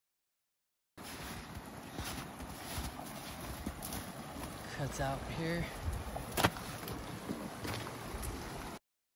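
A shallow stream babbles and trickles over rocks nearby.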